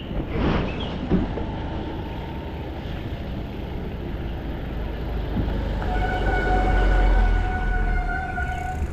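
Wind rumbles past the rider.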